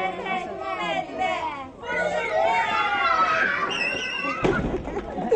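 Young children sing together.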